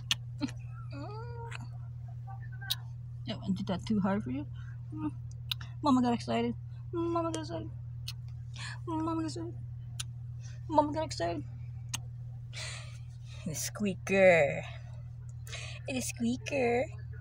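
A young woman speaks softly and affectionately close by.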